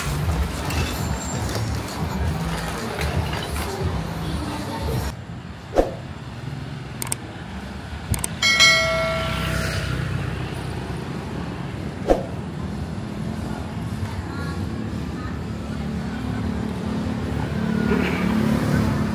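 Traffic rumbles steadily along a nearby street outdoors.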